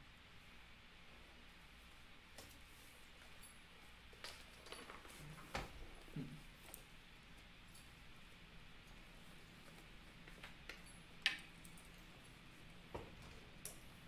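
Paper rustles and taps under hands.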